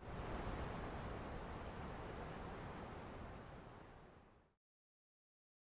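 A shallow river flows and babbles over stones, fading away.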